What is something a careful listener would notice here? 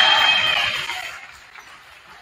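A crowd cheers in an echoing gym.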